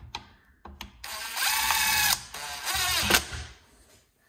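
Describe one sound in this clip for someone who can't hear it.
A cordless impact driver whirs in short, loud bursts as it turns a screw.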